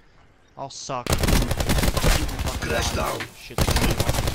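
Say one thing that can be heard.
A rifle fires rapid bursts at close range.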